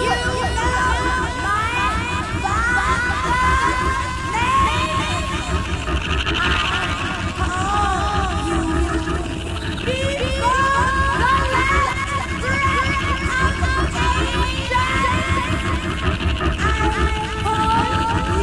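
A woman sings and wails wildly through a microphone.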